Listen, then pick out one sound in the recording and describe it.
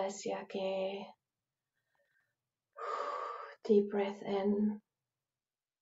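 A woman speaks calmly and softly through a microphone, pausing between phrases.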